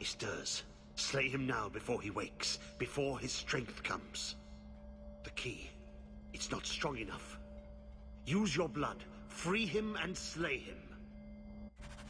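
A woman speaks slowly and dramatically, close by.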